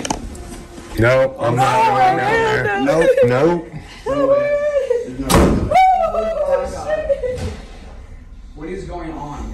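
A young man talks and shouts excitedly close by.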